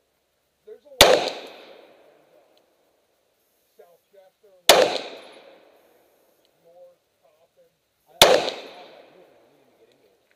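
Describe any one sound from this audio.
A handgun fires loud single shots outdoors, each echoing away.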